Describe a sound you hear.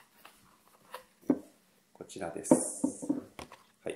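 A cardboard box is set down on a wooden table with a light knock.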